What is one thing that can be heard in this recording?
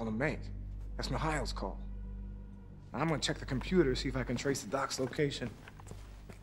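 An older man answers in a deep, calm voice.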